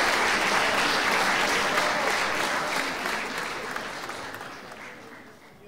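A large audience applauds loudly indoors, the clapping slowly fading away.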